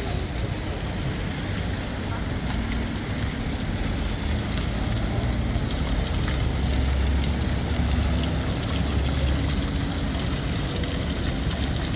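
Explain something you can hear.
Water splashes steadily in a fountain.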